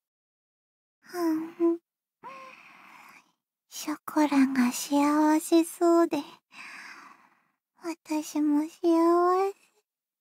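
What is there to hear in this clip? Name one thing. Another young woman murmurs sleepily in a high voice and hums.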